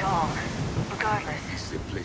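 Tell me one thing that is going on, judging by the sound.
Waves crash against a shore.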